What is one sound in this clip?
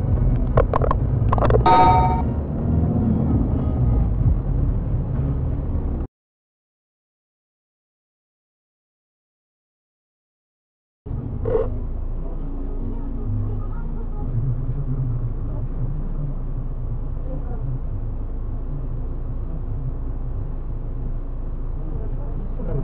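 A car engine rumbles steadily, heard from inside the car.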